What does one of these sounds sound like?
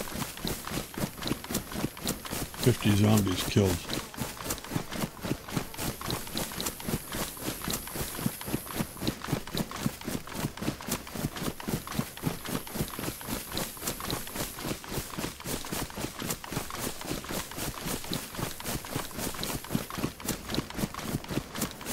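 Footsteps swish steadily through tall grass.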